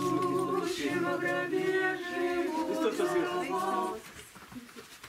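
A group of women sing a hymn together.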